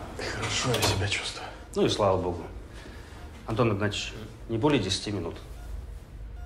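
A man speaks in a low, serious voice nearby.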